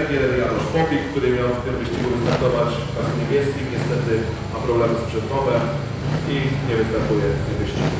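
A quad bike engine hums as it rides slowly.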